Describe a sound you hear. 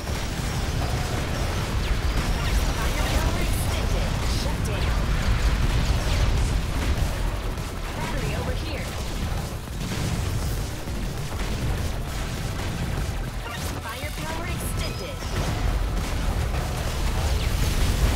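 Explosions and gunfire crackle and boom steadily.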